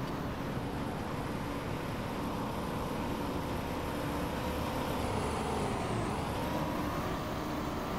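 A car engine hums steadily and its pitch slowly rises and falls.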